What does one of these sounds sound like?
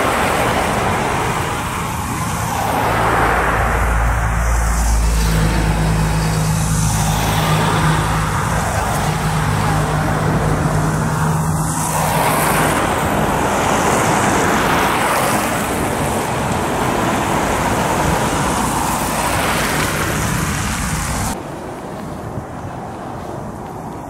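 Road traffic rumbles past steadily.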